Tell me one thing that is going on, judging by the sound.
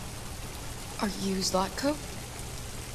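A young woman asks a question quietly.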